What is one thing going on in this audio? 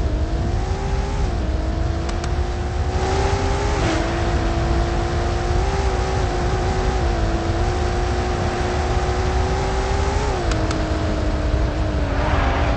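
A racing car engine drones steadily, its pitch dipping briefly with gear changes.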